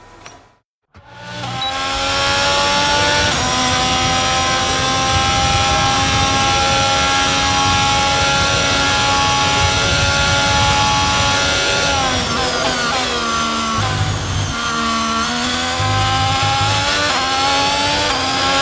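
A Formula 1 racing car engine screams at high revs.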